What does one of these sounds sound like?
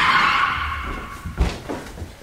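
Footsteps thump on a wooden floor.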